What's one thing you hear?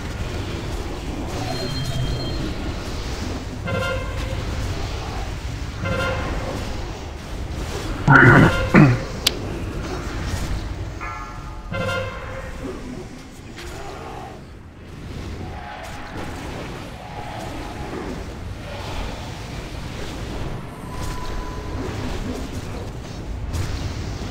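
Spells and weapon blows crash and whoosh in a busy battle.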